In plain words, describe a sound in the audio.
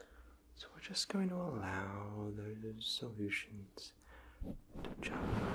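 A young man speaks softly and closely into a microphone.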